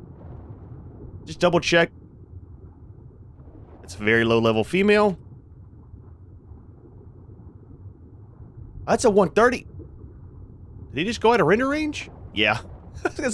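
A low underwater rumble hums steadily.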